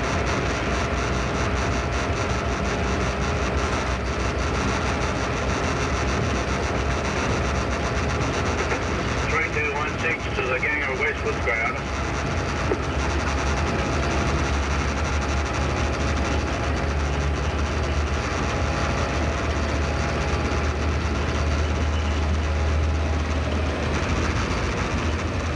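A locomotive engine rumbles steadily while moving.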